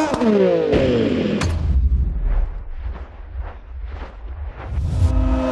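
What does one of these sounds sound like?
A racing motorcycle engine whines loudly, falling and then rising in pitch.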